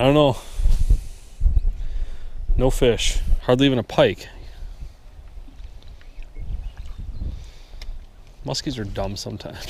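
Small waves lap gently on the water.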